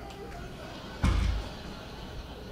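Something knocks against a wall with a thud.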